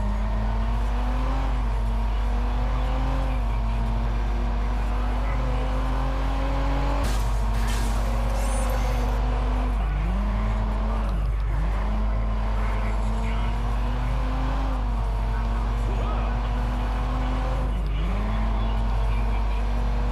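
Tyres squeal as a car skids through a turn.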